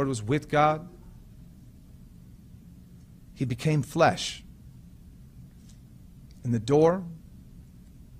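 A man speaks calmly into a microphone in short phrases, with pauses.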